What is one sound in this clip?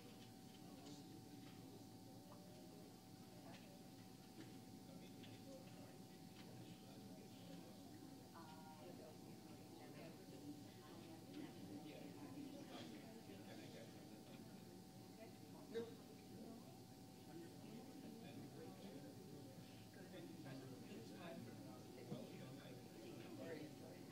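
A small seated crowd murmurs quietly in a large room.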